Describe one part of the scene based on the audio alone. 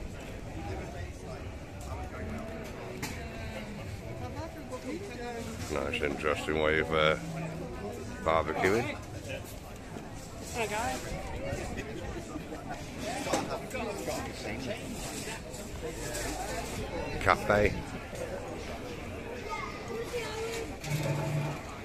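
A crowd of people chatter outdoors in the open air.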